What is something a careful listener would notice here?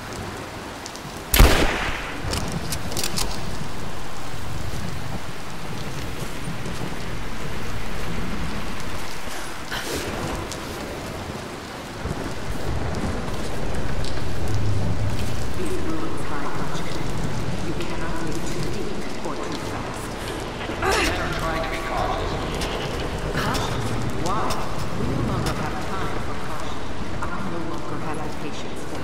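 Rain falls steadily and patters on stone.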